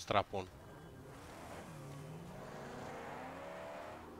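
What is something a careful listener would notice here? A car engine revs and rumbles.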